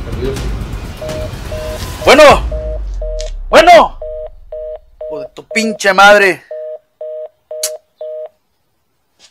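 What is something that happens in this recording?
A phone beeps repeatedly.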